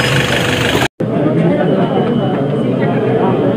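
A crowd of people murmurs indoors.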